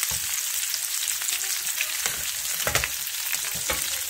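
A metal lid clanks onto a pan.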